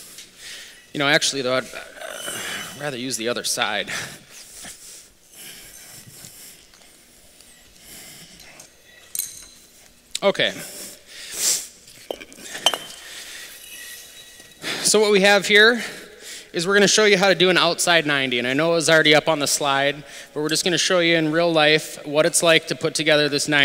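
A man talks calmly into a microphone.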